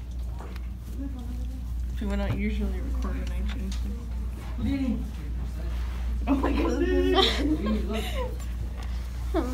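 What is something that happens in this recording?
A young woman laughs and talks with animation close by.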